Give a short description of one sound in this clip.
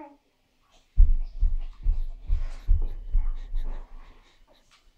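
A little girl's feet thump on a carpeted floor as she jumps and runs.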